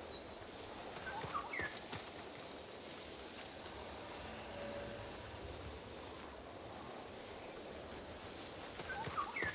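Wind blows steadily through tall grass outdoors.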